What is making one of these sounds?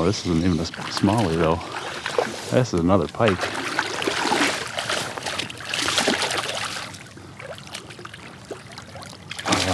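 A fish splashes and thrashes at the water's surface close by.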